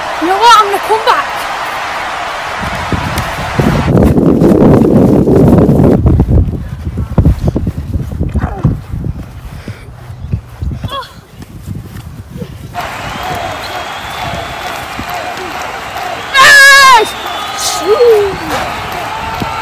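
A young boy shouts excitedly nearby.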